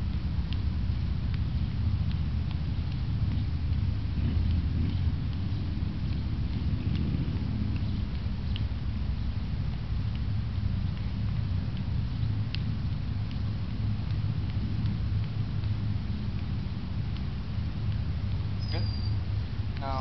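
Hands and arms slap lightly against each other in quick exchanges.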